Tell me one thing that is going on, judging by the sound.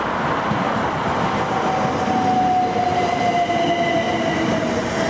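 A train's motors whine and slowly fall in pitch as it passes.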